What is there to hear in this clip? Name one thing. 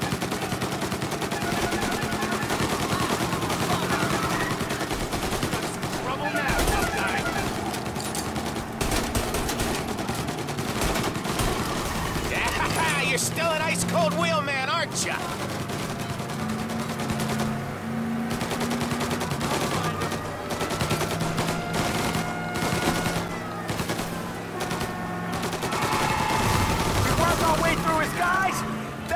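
Gunshots crack again and again.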